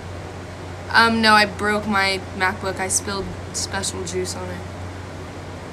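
A young woman speaks casually close to a phone microphone.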